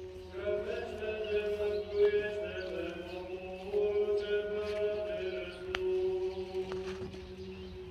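Men chant together in long, steady tones outdoors.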